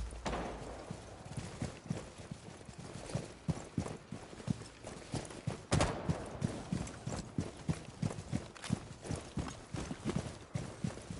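Footsteps thud quickly on the ground as a person runs.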